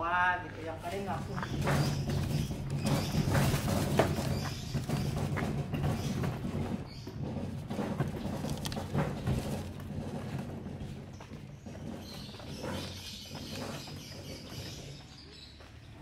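A wooden cart rattles and rumbles as it rolls over a rough road.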